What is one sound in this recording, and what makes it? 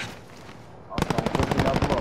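A rifle fires rapid loud shots in quick succession.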